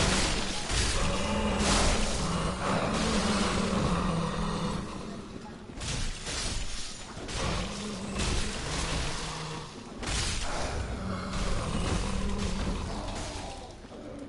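Footsteps thud on stone with clinking armor.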